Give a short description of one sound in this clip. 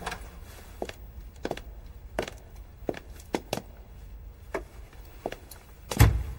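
Footsteps click on a hard wooden floor.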